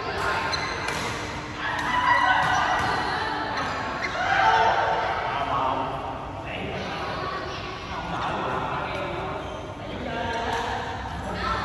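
Men talk and call out to each other across the court, echoing in a large hall.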